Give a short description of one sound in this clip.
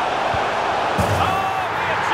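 A football is kicked hard.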